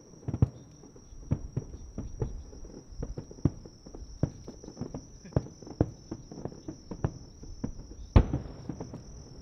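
Fireworks crackle after bursting.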